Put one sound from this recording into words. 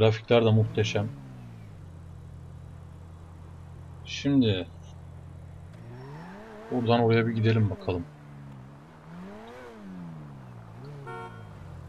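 A sports car engine idles and then revs as the car pulls away.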